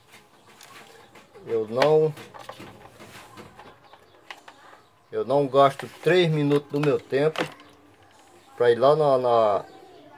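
Plastic fan parts knock and rattle as they are handled close by.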